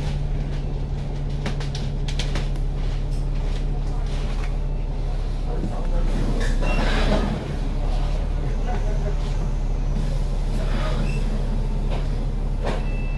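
A steady low engine rumble hums throughout.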